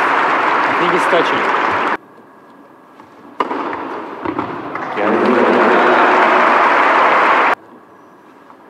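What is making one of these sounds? A crowd applauds in an echoing hall.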